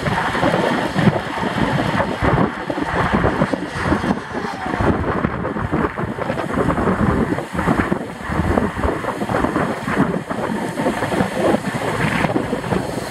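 Wind buffets loudly at speed outdoors.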